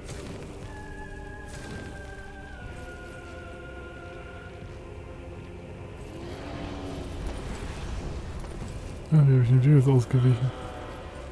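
Flames roar with a low, steady rumble.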